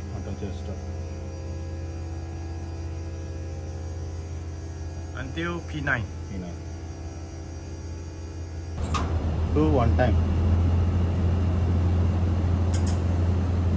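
An air conditioning unit hums steadily.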